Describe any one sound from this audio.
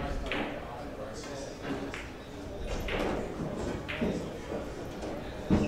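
Billiard balls clack together and roll across the table.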